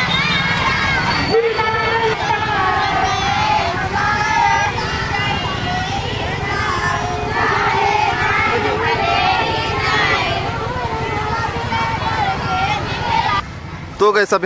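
A crowd of girls chants together loudly outdoors.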